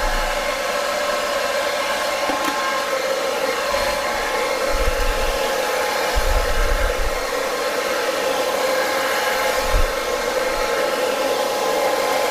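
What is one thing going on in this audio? A hair dryer blows with a steady roar close by.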